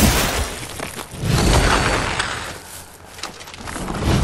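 Swords swish and clash in a fight.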